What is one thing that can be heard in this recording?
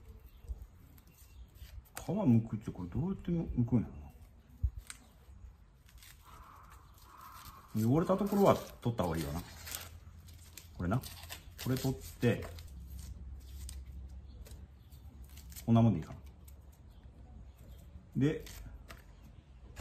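Dry onion skin crackles as it is peeled.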